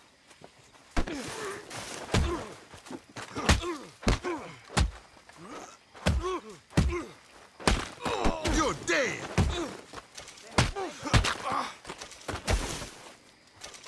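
Heavy punches thud in a brawl.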